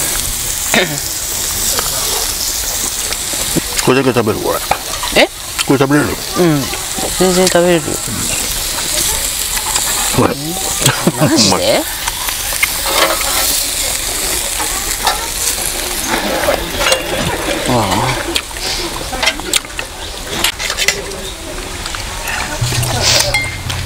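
A steak sizzles on a hot griddle.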